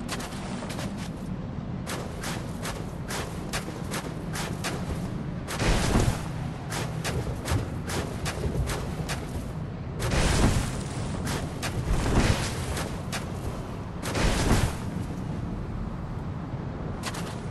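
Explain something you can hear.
Blades slash and strike repeatedly in a fight.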